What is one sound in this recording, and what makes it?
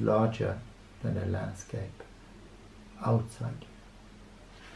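A middle-aged man reads aloud calmly, close by.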